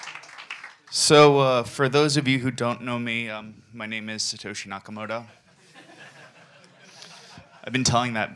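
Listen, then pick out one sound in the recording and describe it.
A man speaks calmly into a microphone, heard through loudspeakers in a room.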